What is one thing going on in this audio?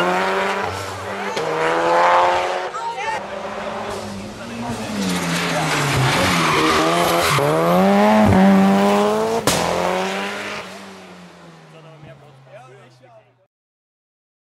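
A turbocharged rally hatchback races past at full throttle, its engine climbing and dropping through the gears before fading away.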